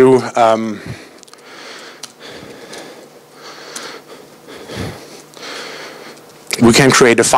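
A man speaks through a microphone in a large room, with pauses.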